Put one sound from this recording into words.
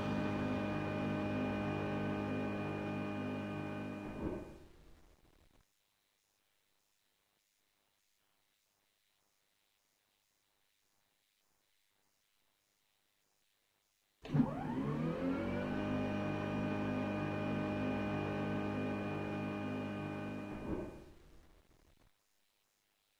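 A jet engine hums steadily, then spins up with a rising whine.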